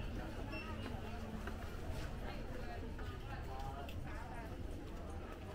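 Several people chatter at a distance in a busy indoor hall.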